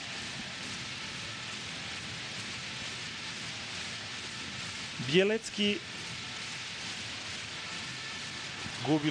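A large crowd murmurs and cheers steadily in a big echoing hall.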